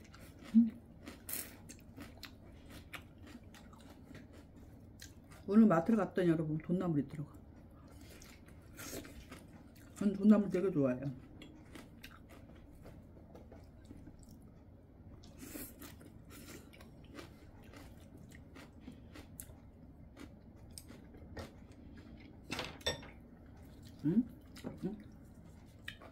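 A woman chews food with wet smacking sounds.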